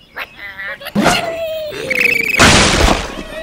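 A cartoon bird squawks as it is launched through the air.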